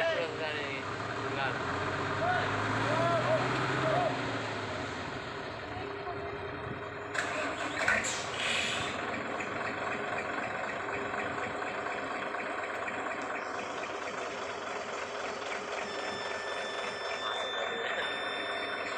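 A heavy truck engine rumbles and strains in mud.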